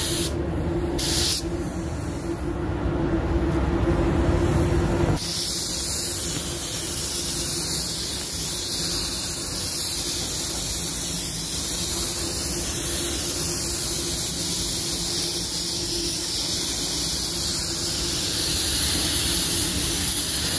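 A spray gun hisses steadily, close by.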